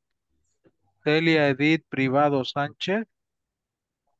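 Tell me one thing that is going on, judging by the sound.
A man speaks briefly and calmly over an online call.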